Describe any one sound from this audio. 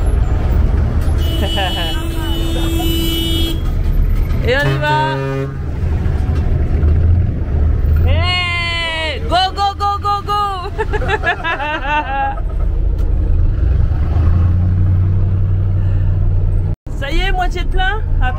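A large truck engine rumbles steadily.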